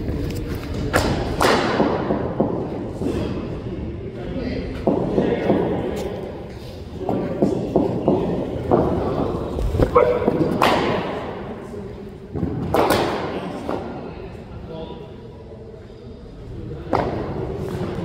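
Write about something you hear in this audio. A cricket bat strikes a ball with a sharp crack, echoing in a netted enclosure.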